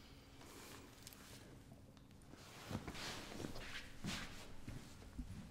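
A young woman speaks quietly and close by.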